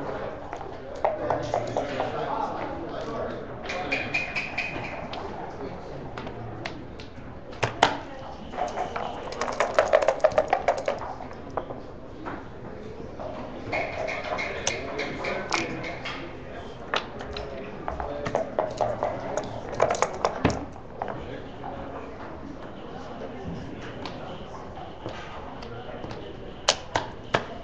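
Game pieces click and clack as they are moved on a wooden board.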